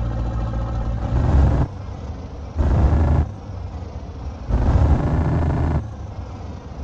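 A diesel truck engine revs in short bursts.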